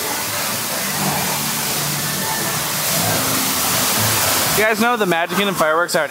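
A waterfall splashes and roars steadily.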